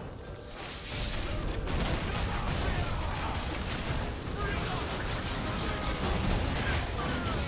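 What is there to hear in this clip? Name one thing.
Game battle effects clash and boom.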